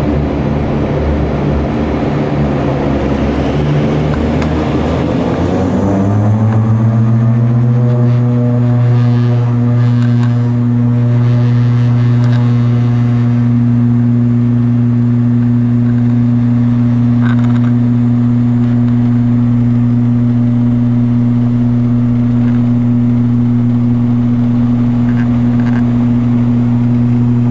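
Aircraft wheels rumble along a runway.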